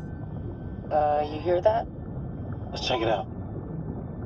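A young woman speaks, muffled through a full-face diving mask.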